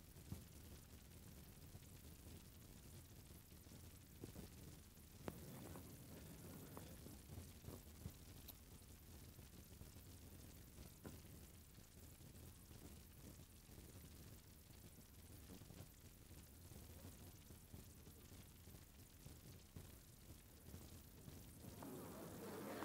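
Small dogs' claws tap on pavement as they walk.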